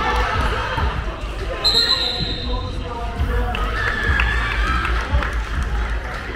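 Teenage boys call out to each other during play.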